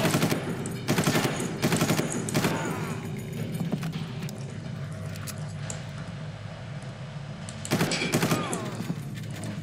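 Rapid gunfire bursts loudly and echoes.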